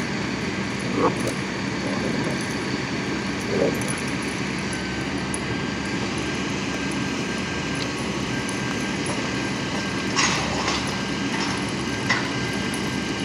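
Dogs yip and bark in short bursts while playing.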